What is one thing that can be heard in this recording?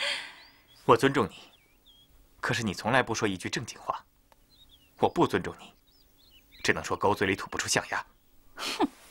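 A man speaks firmly and close by.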